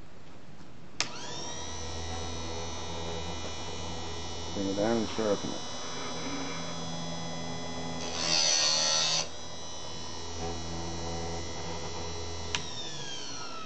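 An electric motor hums steadily.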